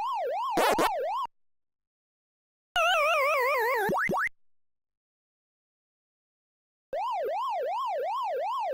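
An arcade game's siren warbles up and down steadily.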